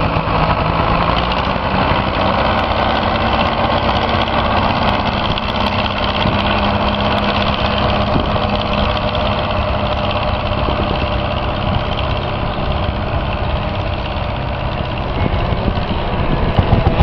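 A tractor engine rumbles steadily close by and slowly moves away.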